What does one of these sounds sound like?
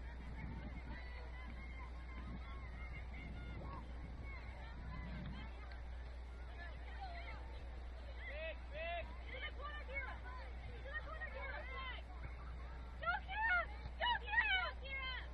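Young women shout and call to each other across an open field, far off.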